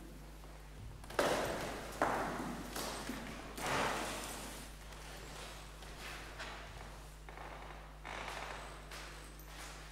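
Footsteps move across a wooden floor.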